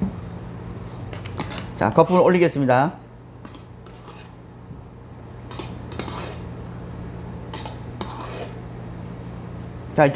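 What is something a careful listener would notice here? A spoon scrapes against a cup.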